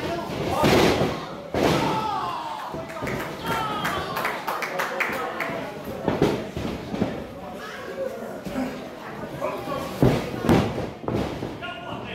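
Bodies thud heavily on a wrestling mat.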